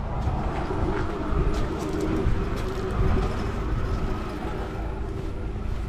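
A man's footsteps crunch on gravel and then tap on a paved path.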